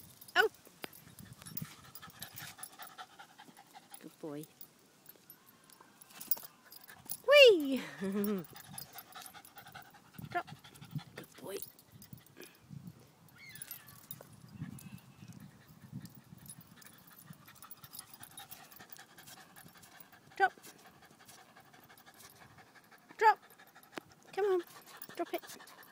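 A small dog's paws patter and rustle across the grass.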